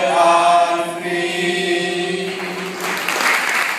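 A mixed choir sings together in an echoing hall.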